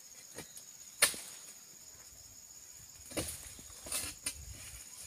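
A blade chops at plants now and then.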